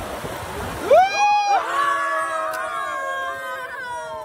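Young men shout and cheer.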